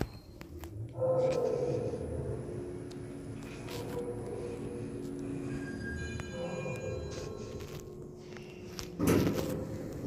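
An elevator hums as it travels in its shaft.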